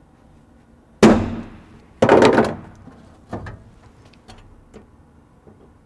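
Metal parts clank and knock against a car floor.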